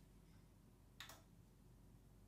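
A switch on an amplifier clicks.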